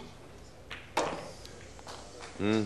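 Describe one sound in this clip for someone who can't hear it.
Billiard balls roll and knock against a cushion.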